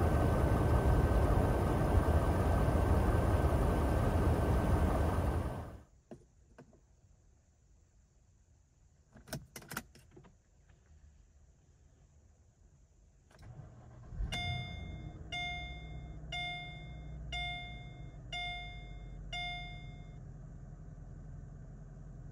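A V8 car engine idles.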